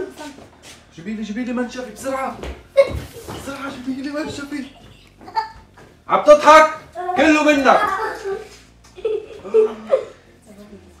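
A young man talks and laughs with animation close by.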